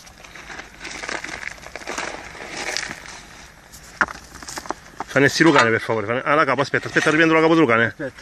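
Hands scrape and dig through loose rubble.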